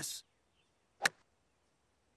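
A mallet knocks a croquet ball.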